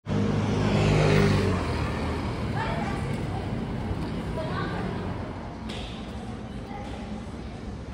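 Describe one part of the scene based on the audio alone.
Traffic hums along a nearby street.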